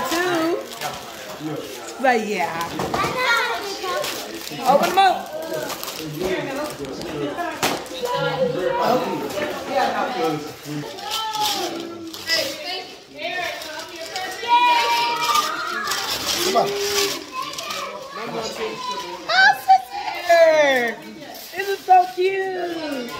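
Several people talk and chatter excitedly close by.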